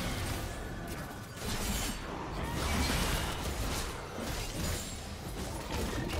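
Fantasy game spells whoosh and clash in a fight.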